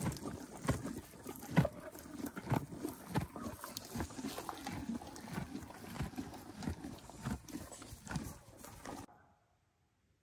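Horses munch and tear at grass up close.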